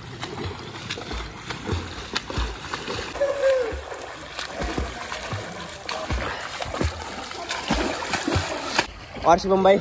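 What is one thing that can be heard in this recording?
Water splashes as a swimmer kicks and strokes.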